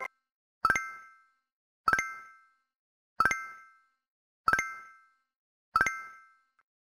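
A bright bell-like chime rings out every second or so, each time fading quickly.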